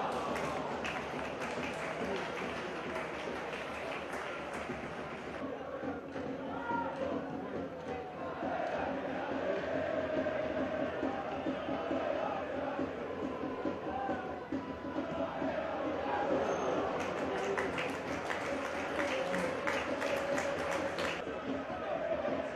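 A large crowd chants and cheers in an open stadium.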